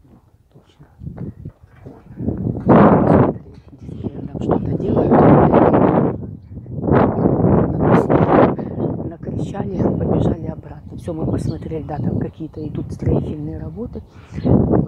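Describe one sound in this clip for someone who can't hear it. Wind gusts loudly across the microphone outdoors.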